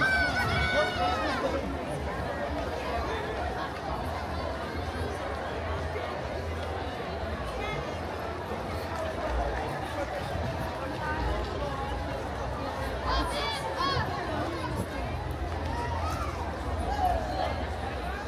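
A large crowd chatters outdoors along a street.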